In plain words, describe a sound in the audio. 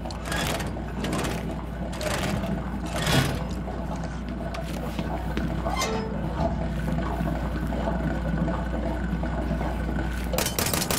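A machine hums steadily and low.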